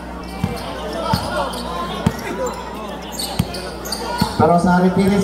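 A basketball bounces sharply on a hard court.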